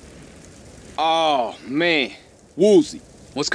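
A second man speaks with animation.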